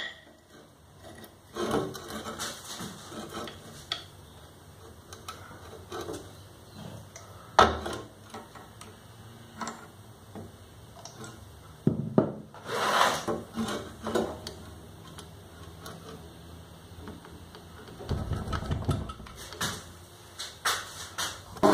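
A metal vise clicks and knocks as its screw is tightened by hand.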